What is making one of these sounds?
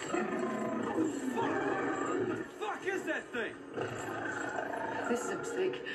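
A creature growls and snarls loudly.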